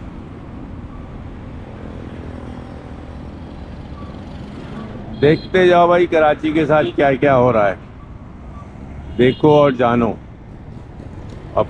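Motorcycles and auto-rickshaws rumble past in street traffic outdoors.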